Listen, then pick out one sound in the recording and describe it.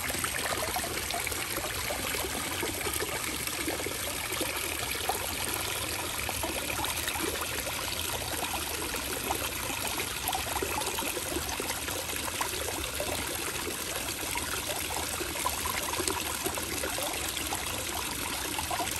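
Water splashes and trickles steadily down over rocks into a pool.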